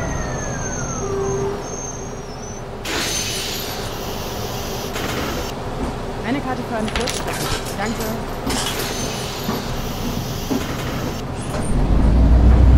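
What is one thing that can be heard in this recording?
A bus engine idles with a low hum.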